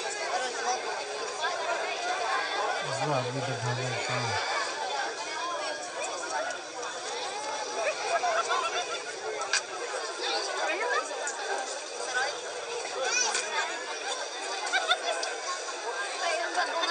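A large outdoor crowd of men, women and children chatters and calls out all around.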